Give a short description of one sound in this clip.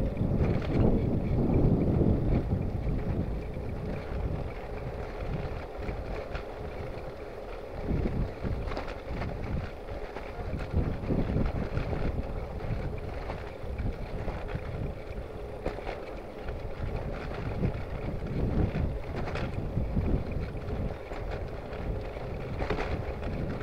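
Bicycle tyres roll steadily over tarmac.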